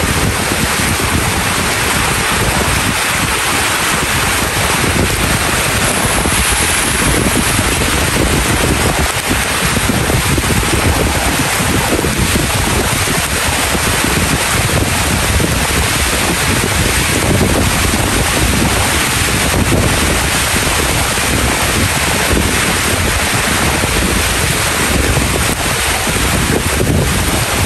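Strong wind gusts and rushes past.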